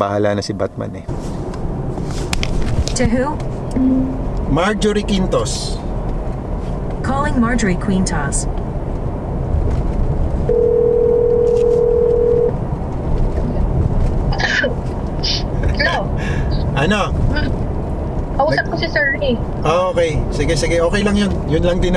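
A car engine and road noise rumble steadily inside a moving car.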